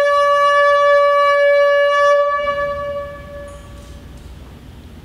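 A single held note plays over loudspeakers in a large hall, then fades away.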